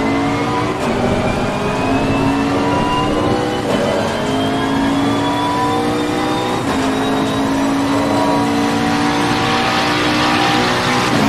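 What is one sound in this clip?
Rain spray hisses under the tyres on a wet track.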